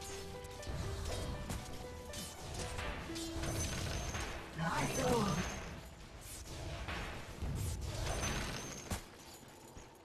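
Magic spells whoosh and crackle in a fantasy battle.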